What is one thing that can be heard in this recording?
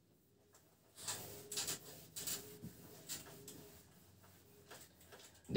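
A board eraser rubs against a whiteboard.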